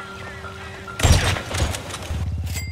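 A sniper rifle fires a loud shot.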